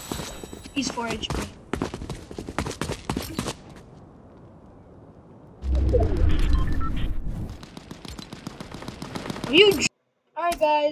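Game sound effects clatter and whoosh.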